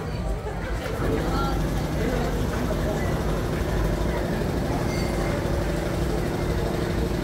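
Music plays over a loudspeaker from a children's fairground ride.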